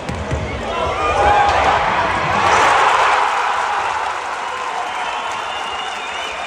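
A crowd cheers loudly in an echoing hall.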